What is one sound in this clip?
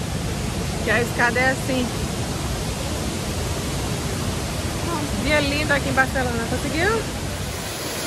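A woman talks with animation close to the microphone.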